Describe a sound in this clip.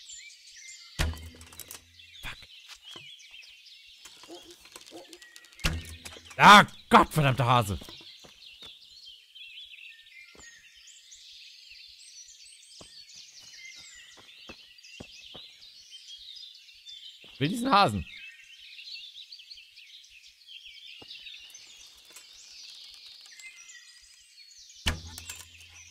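A bowstring snaps as an arrow is loosed.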